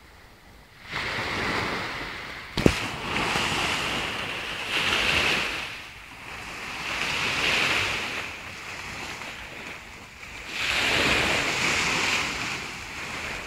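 Small waves wash onto a beach in repeated surges.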